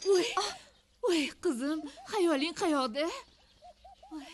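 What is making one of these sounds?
A middle-aged woman cries out and wails nearby.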